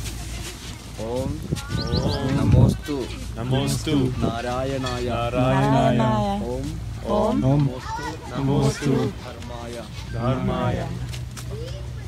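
A man chants loudly in a prayer, close by.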